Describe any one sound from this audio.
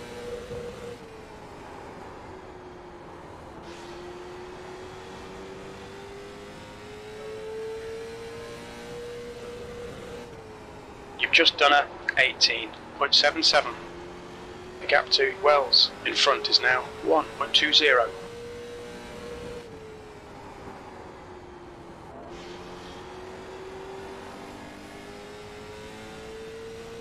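A race car engine drones steadily, rising and falling in pitch.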